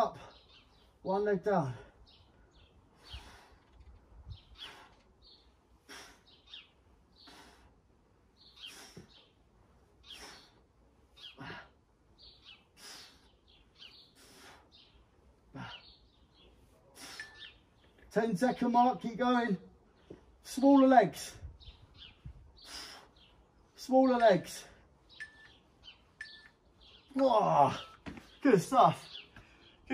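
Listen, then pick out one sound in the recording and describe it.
A man breathes hard while exercising.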